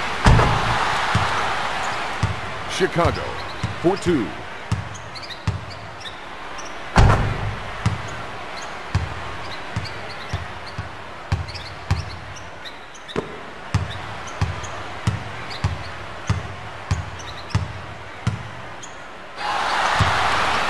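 A basketball is dribbled on a hardwood court.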